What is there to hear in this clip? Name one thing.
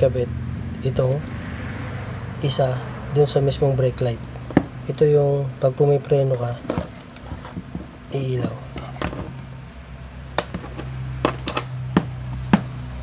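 Plastic parts click and tap as they are handled.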